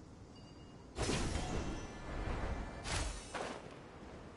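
A shimmering magic sound swells and bursts.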